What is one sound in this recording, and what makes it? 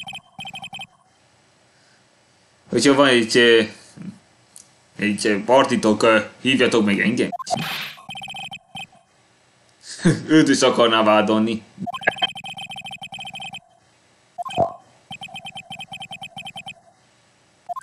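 Rapid electronic blips chirp in short bursts.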